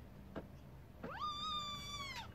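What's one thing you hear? A kitten mews loudly up close.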